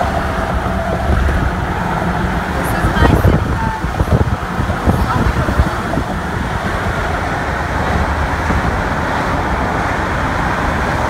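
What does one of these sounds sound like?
Wind rumbles steadily across the open air outdoors.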